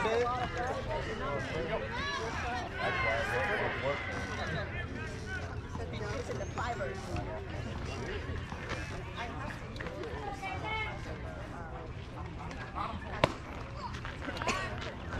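Men call out and chatter across an open field.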